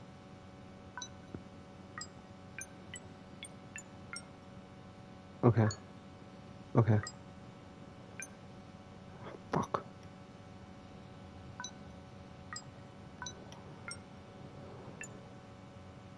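Keypad buttons click softly as they are pressed.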